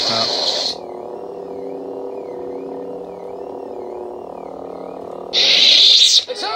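A toy lightsaber hums steadily.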